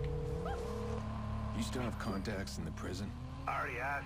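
A car crashes into a truck with a loud thud.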